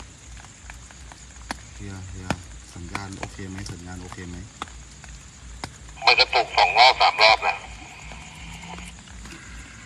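Raindrops patter on an umbrella close by.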